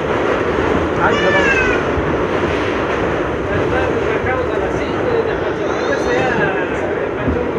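Train wheels squeal shrilly against the rails.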